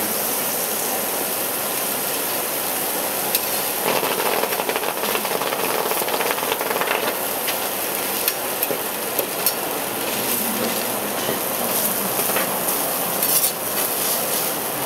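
Food sizzles on a hot steel griddle.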